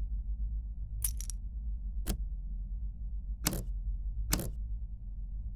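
A key clicks as it turns in a lock.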